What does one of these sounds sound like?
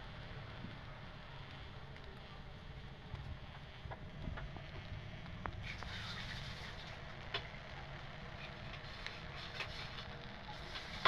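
Food sizzles and crackles softly in a hot pan.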